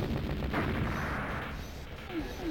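Gunfire bursts from an arcade game.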